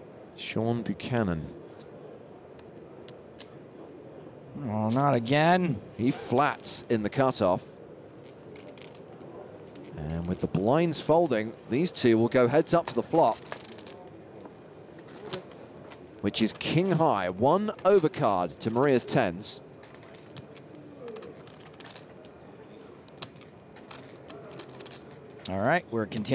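Poker chips click softly as they are handled and stacked.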